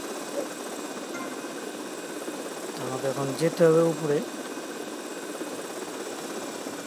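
A small helicopter's rotor whirs steadily.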